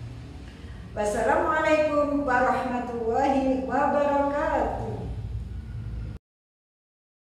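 A middle-aged woman speaks close by in a drawn-out, sing-song voice.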